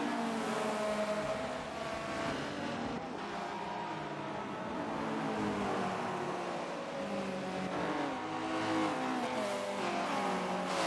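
Several race car engines rumble and rev as the cars roll slowly past.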